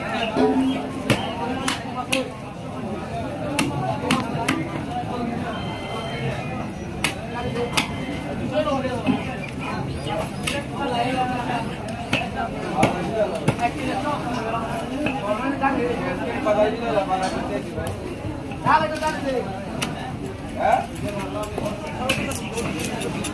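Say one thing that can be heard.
A heavy blade chops and thuds into fish on a wooden block.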